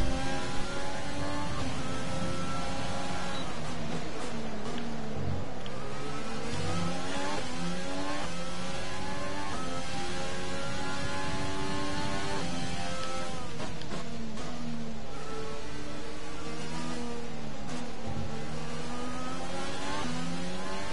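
A racing car engine screams at high revs, rising through the gears and dropping as it slows for corners.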